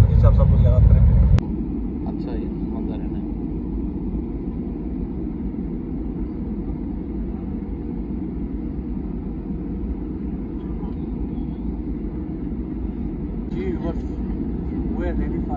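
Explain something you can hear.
A jet engine roars steadily inside an aircraft cabin.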